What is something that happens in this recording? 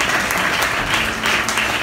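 An electric piano plays chords.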